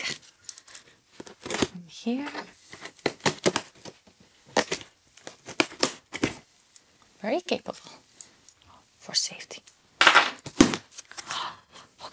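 Tape rips off a cardboard box.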